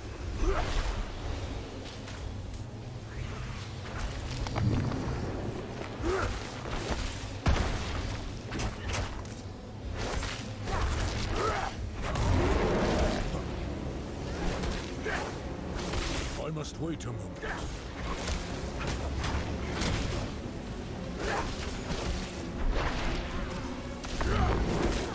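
Magic blasts whoosh and burst.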